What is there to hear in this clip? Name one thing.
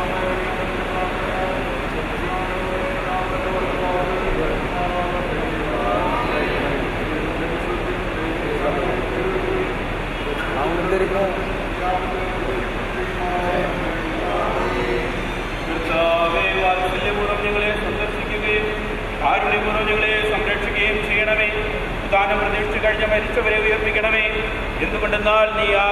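A group of men and women chant prayers together in a slow, steady tone.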